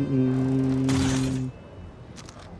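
A metal case clicks and hums as it opens.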